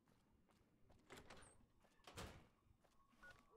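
A heavy door swings open with a whoosh.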